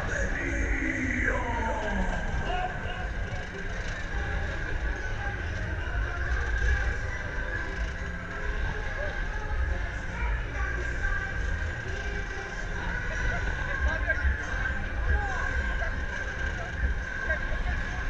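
A fairground ride spins, its machinery rumbling steadily.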